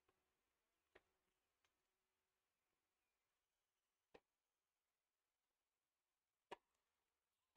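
A tennis ball bounces on a hard court a few times.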